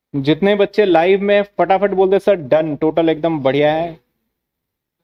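A young man speaks excitedly and quickly, close to a microphone.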